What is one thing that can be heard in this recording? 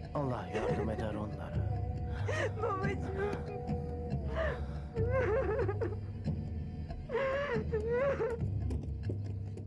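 A woman wails and sobs close by.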